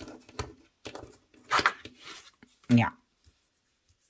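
A card slaps softly onto a wooden table.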